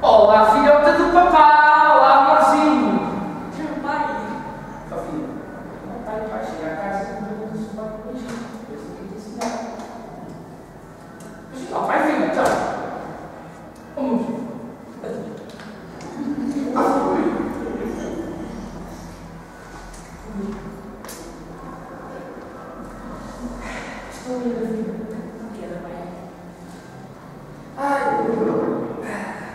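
A man speaks on a stage in a reverberant hall.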